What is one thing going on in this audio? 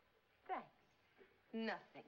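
A woman speaks warmly and cheerfully nearby.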